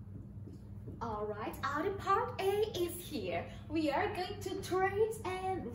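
A woman speaks animatedly and clearly into a microphone.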